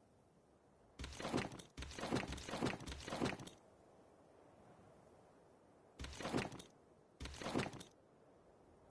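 Soft clicks and rustles come in short bursts.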